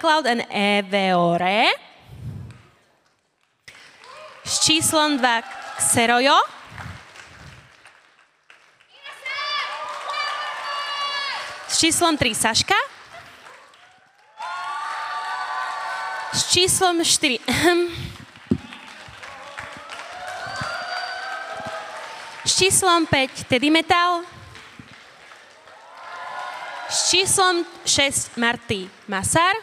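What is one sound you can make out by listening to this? A young woman speaks with animation through a loudspeaker in a large echoing hall.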